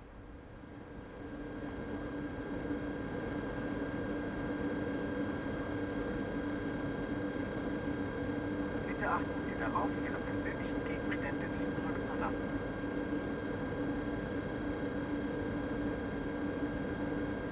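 A stationary electric train hums steadily at a platform.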